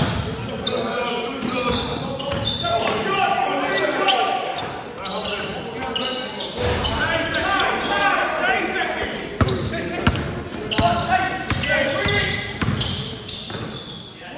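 Men shout and call out to each other during play.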